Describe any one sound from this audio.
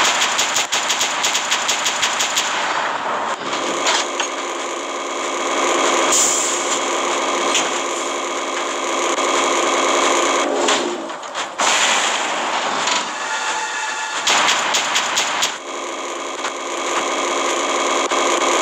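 A heavy robot's engine hums steadily.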